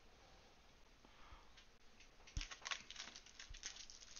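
Cards rustle and slide against each other in hands.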